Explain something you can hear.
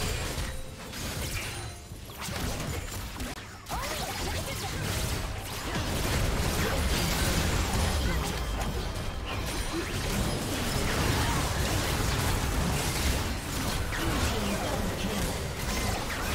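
Game spells and attacks crackle and boom in a busy fight.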